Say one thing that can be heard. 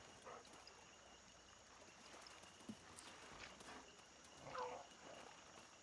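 A dog whimpers softly.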